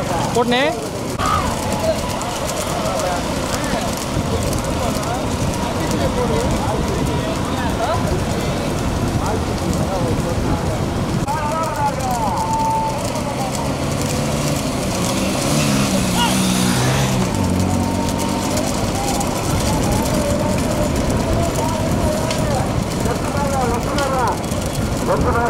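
Cart wheels rumble over the road.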